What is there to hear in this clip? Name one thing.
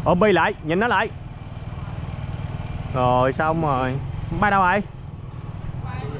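A motorbike engine hums as it drives past.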